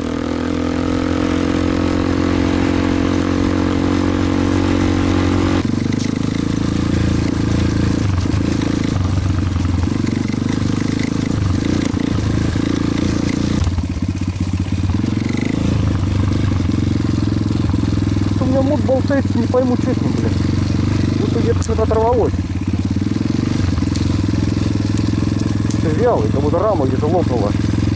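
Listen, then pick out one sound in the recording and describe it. A motorcycle engine roars steadily, rising and falling with the throttle.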